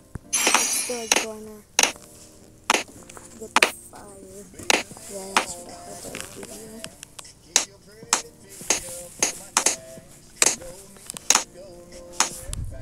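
Balloons pop in quick, sharp bursts.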